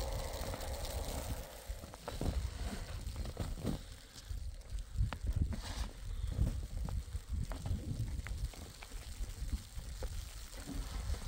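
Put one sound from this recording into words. A shovel scrapes and pushes snow across a roof.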